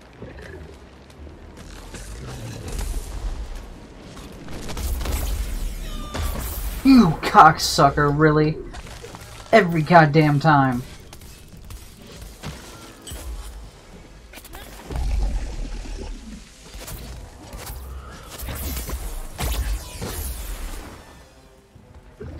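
A heavy blade whooshes and strikes repeatedly.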